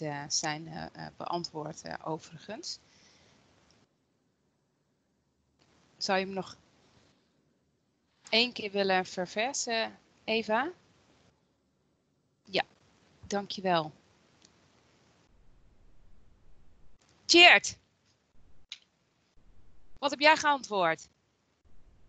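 A man speaks calmly over an online call, in short bursts with pauses.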